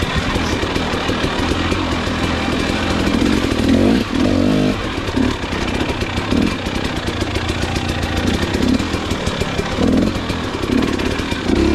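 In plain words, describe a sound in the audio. A dirt bike engine revs and bursts up and down up close.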